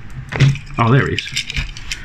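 Small plastic and metal toy parts click softly in someone's fingers.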